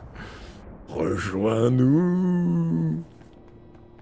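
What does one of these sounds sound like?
A young man groans loudly close to a microphone.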